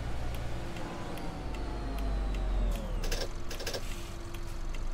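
Brakes hiss and squeal briefly as a bus slows down.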